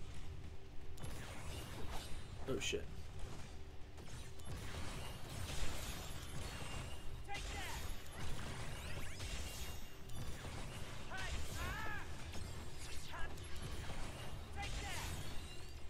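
Swords slash and strike in a fast fight.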